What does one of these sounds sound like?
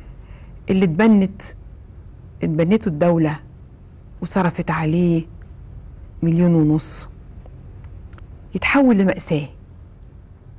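A woman speaks calmly into a microphone in short phrases.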